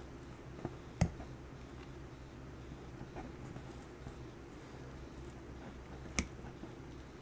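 Small plastic wire connectors click softly into place.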